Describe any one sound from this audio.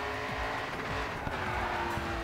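Tyres screech as a car drifts.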